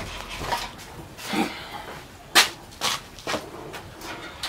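A young woman sobs and wails close by.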